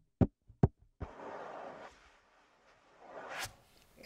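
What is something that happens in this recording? A hand rubs across a drum's skin with a soft swishing sound.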